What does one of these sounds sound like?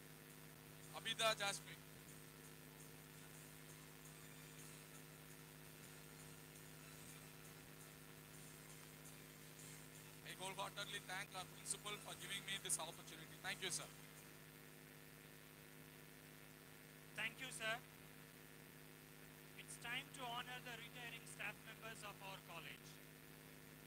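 A man speaks into a microphone over a loudspeaker, in short bursts with pauses.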